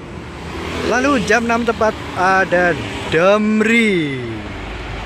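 A bus sounds a musical multi-tone horn in short blasts.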